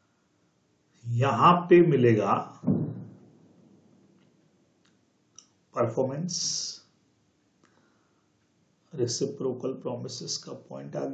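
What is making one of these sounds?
A young man speaks calmly into a close microphone, explaining in pauses.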